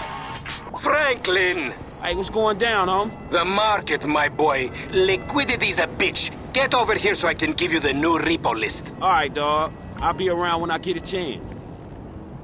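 A young man talks casually on a phone call.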